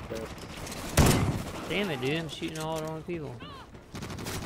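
A rifle fires a few sharp shots nearby.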